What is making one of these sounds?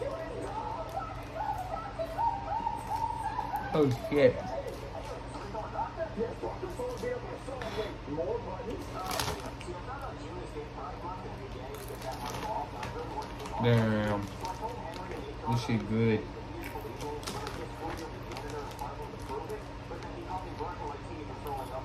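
A young man crunches on chips.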